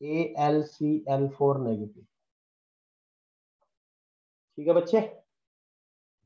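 A man speaks calmly, explaining.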